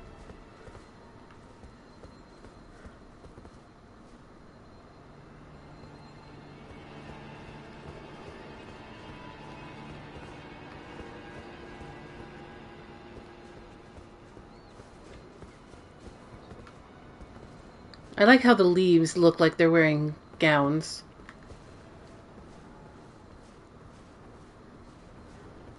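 Footsteps clink and scrape on stone.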